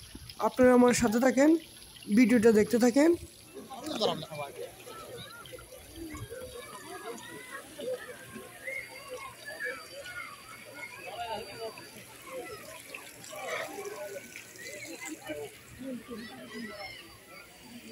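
A crowd of people chatters outdoors in the background.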